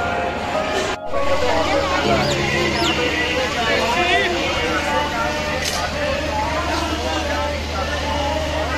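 A busy outdoor crowd of men and women chatters all around.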